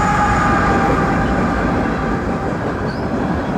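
Train wheels squeal with a high, steady screech.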